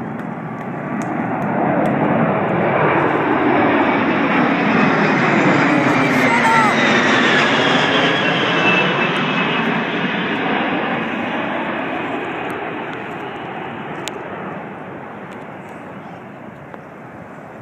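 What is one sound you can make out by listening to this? A large jet plane roars loudly overhead, swelling and then slowly fading away.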